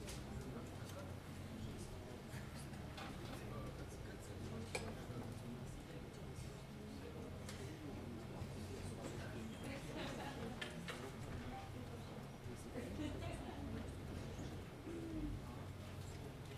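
A piano plays chords.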